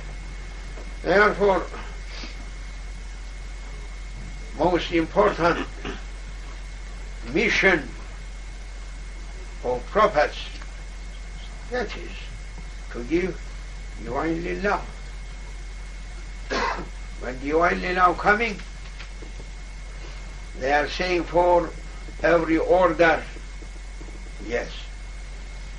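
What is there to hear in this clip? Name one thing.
An elderly man speaks slowly and calmly in short phrases with long pauses.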